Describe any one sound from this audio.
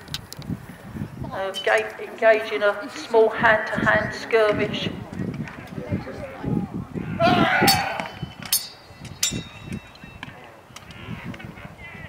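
Wooden poles and weapons clack and knock against each other and shields.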